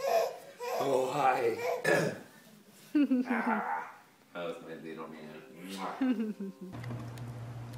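A baby laughs loudly close by.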